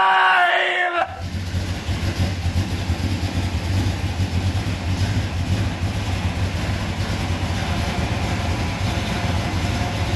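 An engine idles with a steady low rumble.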